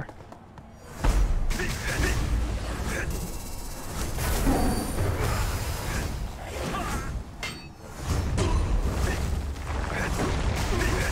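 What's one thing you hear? Magic spells and blows clash loudly in a fight.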